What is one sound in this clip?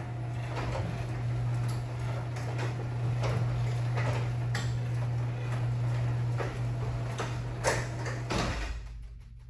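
A garage door rattles and clatters as it rolls along its tracks.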